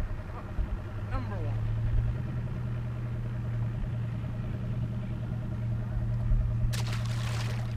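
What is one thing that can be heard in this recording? An electric boat motor hums steadily.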